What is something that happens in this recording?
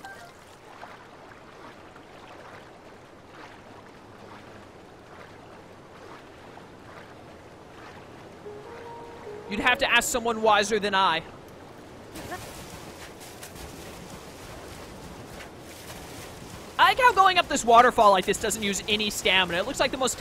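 Water splashes softly as a swimmer paddles.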